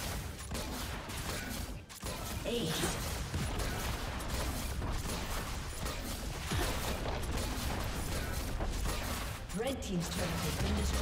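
Fantasy battle sound effects of spells and weapons clash and crackle.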